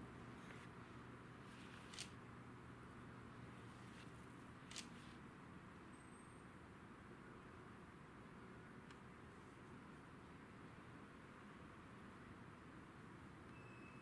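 Hands rub and swish across paper.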